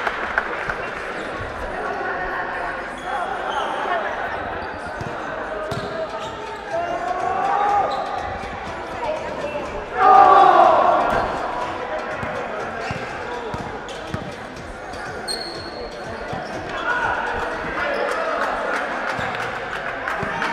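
A crowd of spectators chatters and cheers in an echoing hall.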